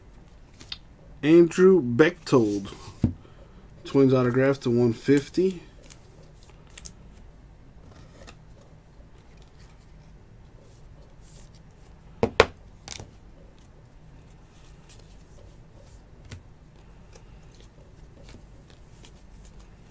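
Trading cards in plastic sleeves rustle and click as hands shuffle them.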